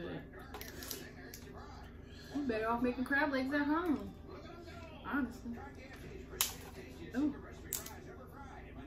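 Crab shells crack and snap in hands.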